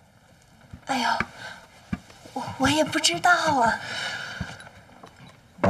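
A young woman speaks lightly and close by.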